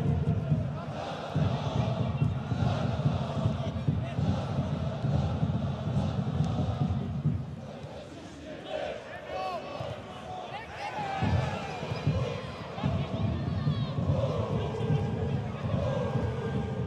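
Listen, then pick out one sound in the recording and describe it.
A stadium crowd chants and cheers steadily in an open, echoing stand.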